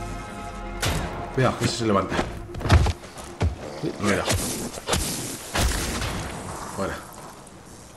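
Heavy blows thud and squelch against flesh.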